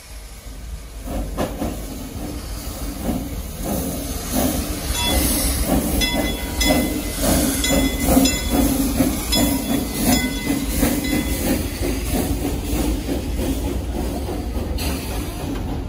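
A steam locomotive chuffs and rolls slowly past, its wheels clanking on the rails.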